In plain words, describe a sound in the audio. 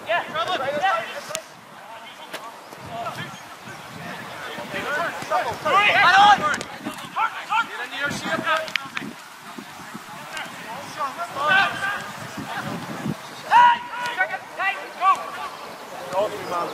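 Young men shout and call to each other outdoors, at a distance.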